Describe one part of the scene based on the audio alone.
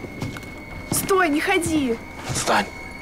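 A young woman cries out urgently nearby.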